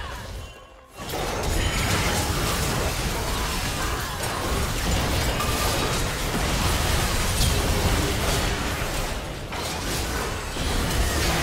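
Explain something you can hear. Game combat blasts and impacts clash loudly in a fight.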